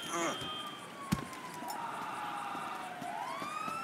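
Footsteps walk on pavement.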